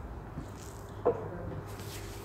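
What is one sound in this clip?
An object is set down on a desk with a knock.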